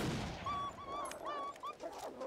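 A rifle bolt clicks as a spent casing is ejected.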